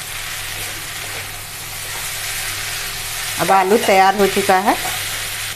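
A wooden spoon scrapes and stirs food in a pan.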